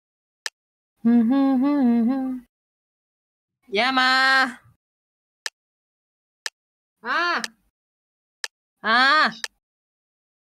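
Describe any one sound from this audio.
Short game chimes count down one by one.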